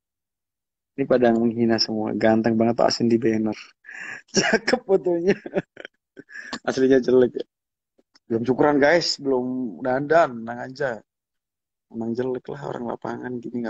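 A young man talks casually and close by, with a laugh now and then.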